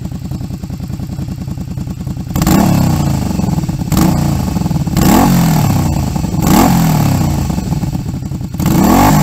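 A motorcycle engine idles with a steady, throbbing exhaust note.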